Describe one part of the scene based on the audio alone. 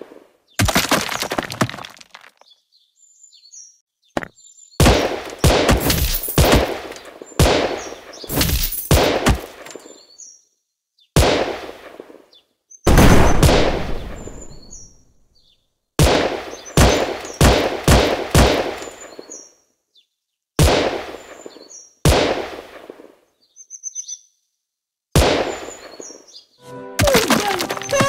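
A pistol fires shots.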